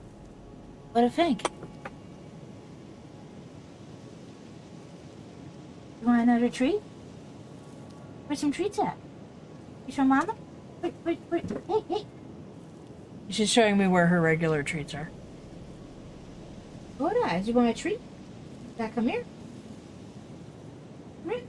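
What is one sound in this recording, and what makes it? A woman speaks casually into a close microphone, in short bursts with pauses.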